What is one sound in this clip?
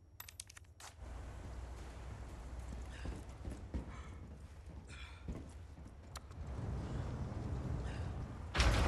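A low ambient rumble hums.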